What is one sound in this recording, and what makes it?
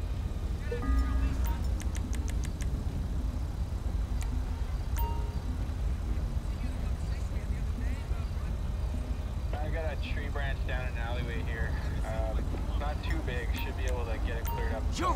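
Short electronic beeps sound.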